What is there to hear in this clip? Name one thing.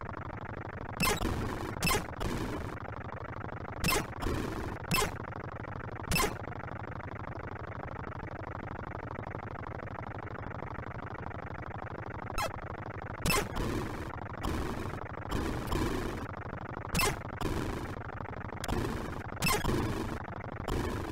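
Short bursts of electronic gunfire and explosions crackle now and then.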